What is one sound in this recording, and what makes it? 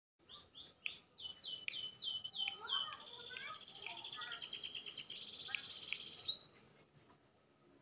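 A bird sings loud, rapid, high chirping calls close by.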